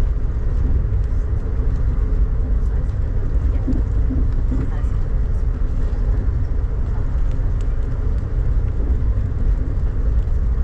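Rain patters against a window glass.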